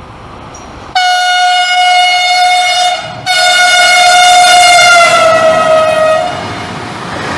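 A train horn blares loudly and steadily, dropping slightly in pitch as the locomotive passes close by.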